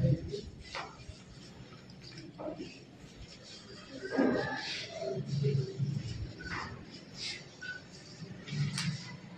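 Voices murmur and talk in an echoing room.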